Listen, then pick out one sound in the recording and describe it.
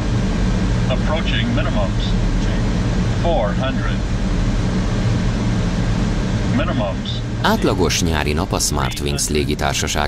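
A man speaks briefly and calmly over a radio headset.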